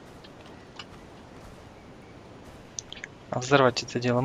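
A rifle's metal parts click as it is handled.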